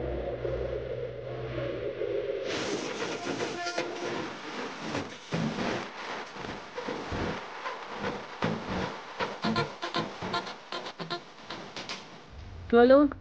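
Silk fabric rustles and swishes as it is unfolded and shaken out.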